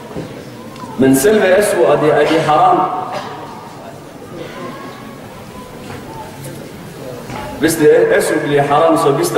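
A man speaks with animation into a microphone in an echoing room.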